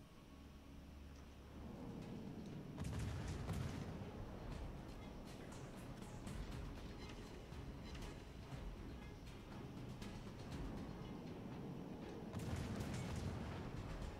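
Distant shells explode with deep rumbling blasts.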